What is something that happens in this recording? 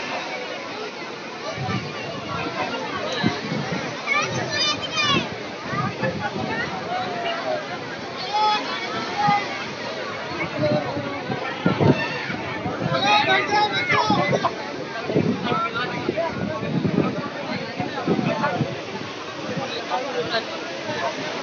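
Waves crash and wash against a sea wall outdoors.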